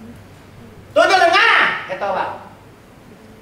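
A young woman speaks brightly in reply.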